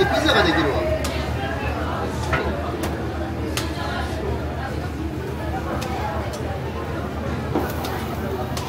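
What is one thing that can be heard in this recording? Metal tongs clink sharply against a pan.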